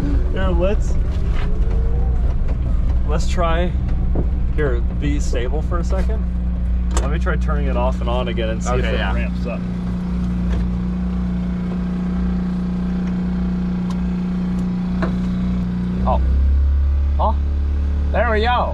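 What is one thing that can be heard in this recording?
A vehicle engine rumbles steadily at idle.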